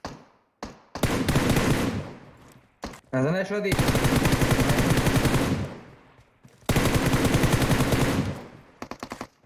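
Rapid rifle fire crackles in long bursts.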